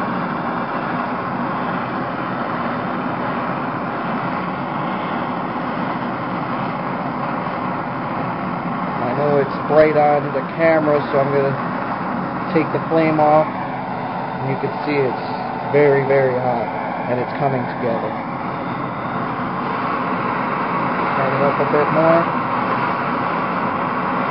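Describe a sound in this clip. A gas torch roars steadily with a loud hissing flame.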